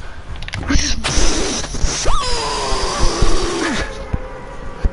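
Wind rushes loudly past a skydiver in free fall.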